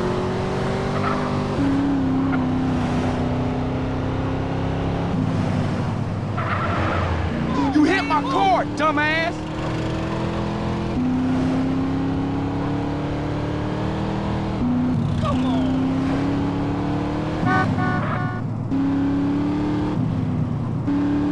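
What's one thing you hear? A car engine hums steadily and shifts gear as the car speeds along.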